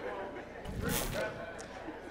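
A man speaks to an audience through a microphone in a large hall.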